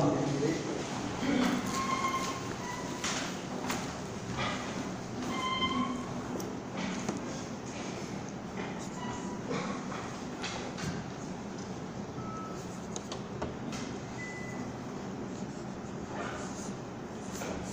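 An elderly man speaks calmly at a distance.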